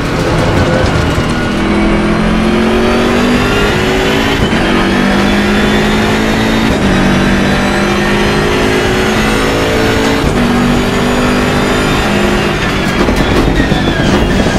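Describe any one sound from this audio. A racing car engine roars and climbs in pitch, dropping briefly at each gear change.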